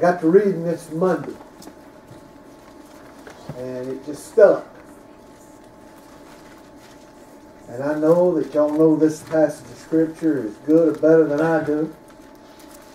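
An older man speaks slowly and earnestly through a microphone in a large room, with pauses between phrases.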